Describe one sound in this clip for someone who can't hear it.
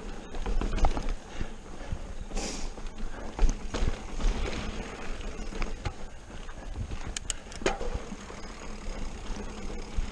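Bicycle tyres roll and crunch over rough rock and dirt.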